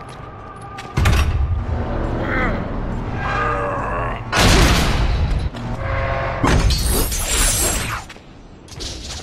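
A heavy stone door grinds and rumbles open.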